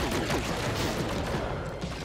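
A laser weapon fires with short electronic zaps.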